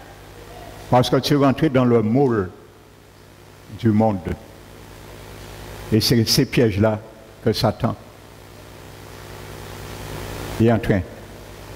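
A middle-aged man speaks calmly through a headset microphone in an echoing room, pausing between phrases.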